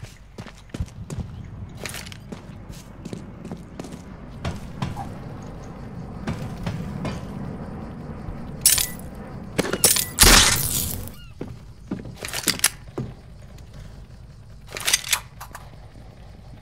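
Footsteps thud on grass and wooden planks.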